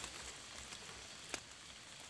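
A knife scrapes at the soil.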